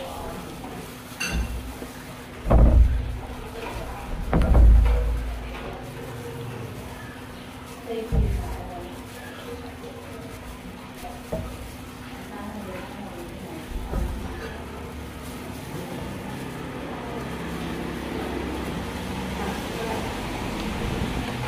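A young woman chews food with soft smacking sounds nearby.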